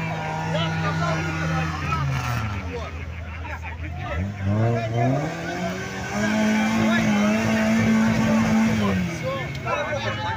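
Thick mud squelches and splashes under spinning tyres.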